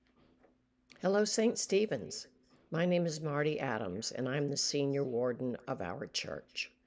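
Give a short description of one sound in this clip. A woman speaks warmly and clearly into a nearby microphone, as if on an online call.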